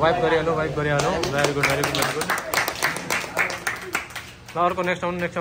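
A group of young people clap their hands.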